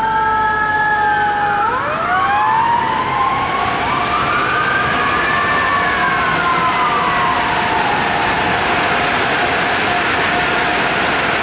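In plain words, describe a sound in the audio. A fire engine's diesel engine rumbles as it drives off.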